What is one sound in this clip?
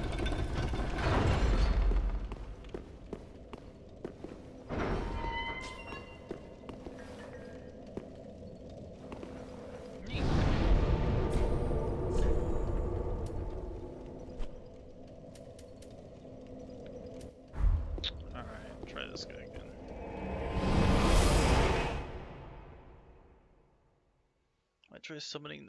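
Heavy blades clash and strike with sharp clangs.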